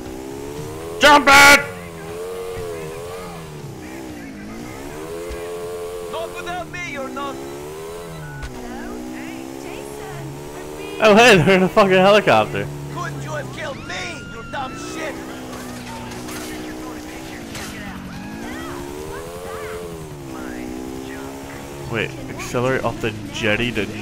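A motorbike engine revs up and down steadily.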